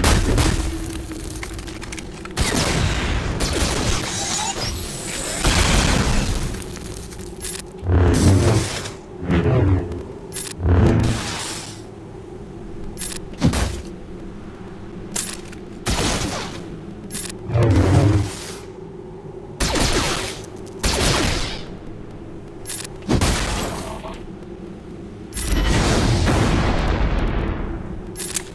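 Lightsabers hum and clash in a fast battle.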